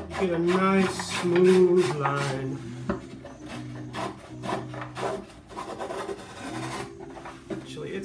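A blade scrapes rapidly across wood.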